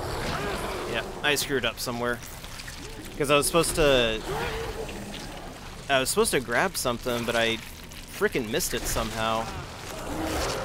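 A creature growls and snarls up close.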